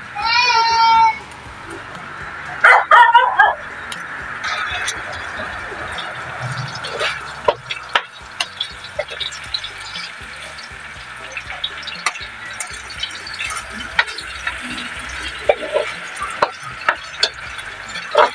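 A metal utensil scrapes and clinks against a pan.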